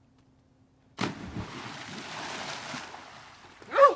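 A person jumps into calm water with a splash.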